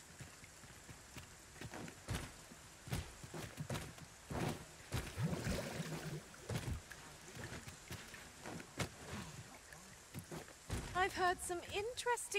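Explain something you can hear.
Footsteps thud quickly on stone and wooden boards.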